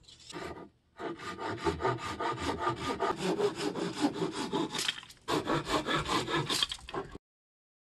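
A hand saw cuts through a wooden board with quick, steady strokes.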